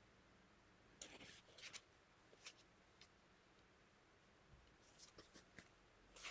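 Paper pages rustle and turn.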